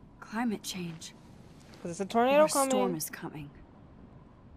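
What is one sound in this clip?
A young woman speaks quietly and thoughtfully.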